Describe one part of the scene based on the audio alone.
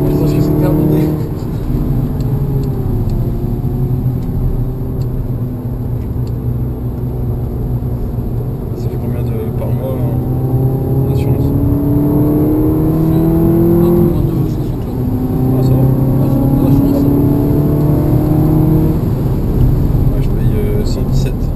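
A car engine hums steadily, rising and falling in pitch as it revs.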